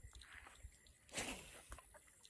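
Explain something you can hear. A fishing rod swishes through the air in a cast.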